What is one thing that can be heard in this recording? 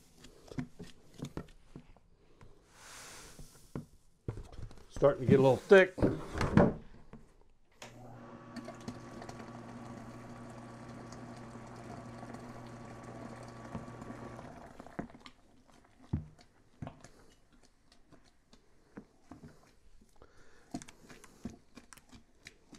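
A spoon stirs and knocks against the inside of a pot.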